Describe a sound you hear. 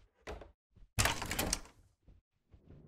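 A door bangs shut loudly.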